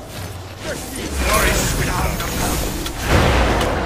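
Magical blasts and clashing weapons burst out loudly in a fight.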